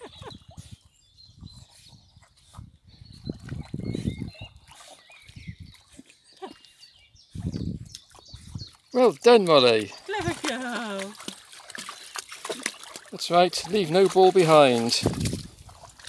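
A dog paddles and splashes through water.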